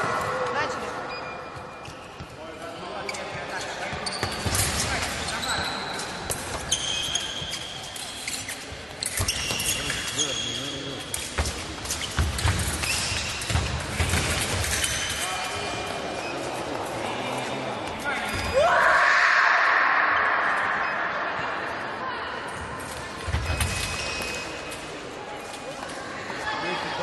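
Fencers' shoes squeak and thump on the floor of a large echoing hall.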